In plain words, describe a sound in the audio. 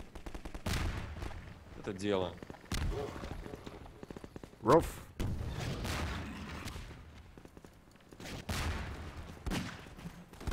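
Gunshots bang sharply.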